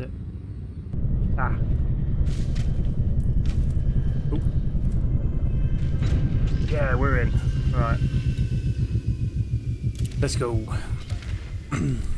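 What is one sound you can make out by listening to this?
A spaceship engine rumbles deeply and steadily.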